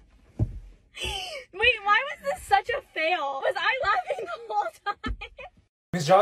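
A young man laughs and talks with animation.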